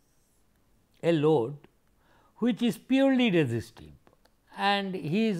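An elderly man speaks calmly into a close microphone, in short bursts with pauses.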